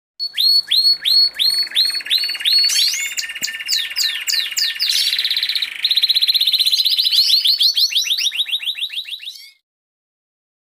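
A canary sings a long, fast trilling song close by.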